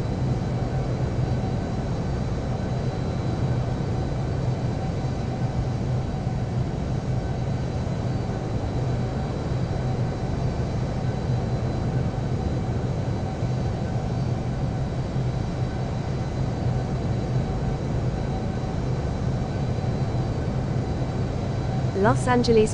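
A jet engine hums steadily as an airliner taxis.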